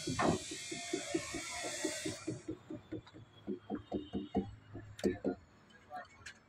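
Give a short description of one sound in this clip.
A metal tool taps rapidly and repeatedly on a truck wheel.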